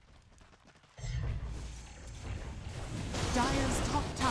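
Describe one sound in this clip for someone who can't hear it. Game battle effects clash and crackle during a fight.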